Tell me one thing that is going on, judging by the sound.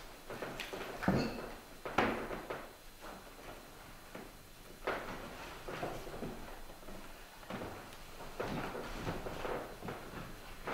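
Boots thud on a wooden stepladder.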